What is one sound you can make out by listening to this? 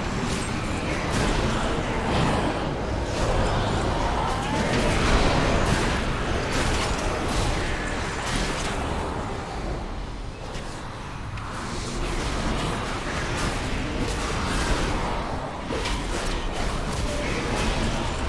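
Spell effects crackle and clash in a fierce battle.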